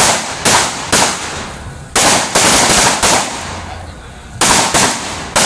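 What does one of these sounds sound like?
Firecrackers bang and crackle loudly in bursts, one after another.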